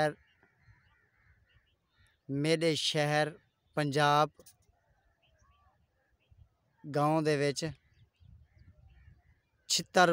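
A peacock gives loud, wailing calls, several times.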